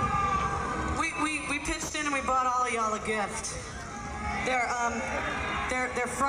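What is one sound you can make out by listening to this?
A young woman sings loudly into a microphone through loudspeakers.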